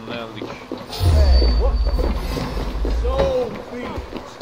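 A smoke bomb bursts with a deep, heavy whoosh.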